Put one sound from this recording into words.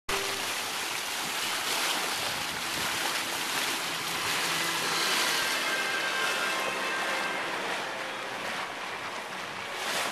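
Water rushes and splashes along a boat's hull.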